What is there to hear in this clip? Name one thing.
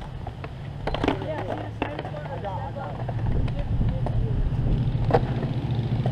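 A skateboard clacks sharply as it lands on concrete.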